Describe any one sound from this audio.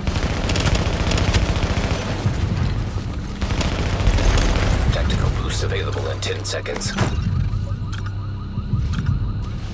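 Gunshots crack in rapid bursts.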